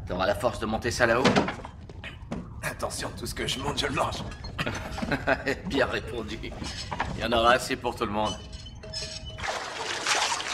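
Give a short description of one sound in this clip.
A man speaks in a low voice close by.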